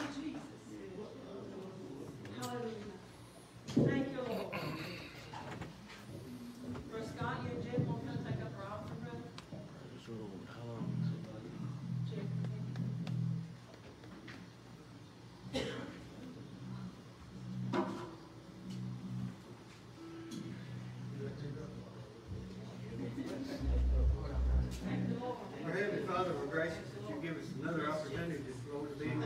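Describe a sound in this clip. Men and women chatter in a large echoing hall.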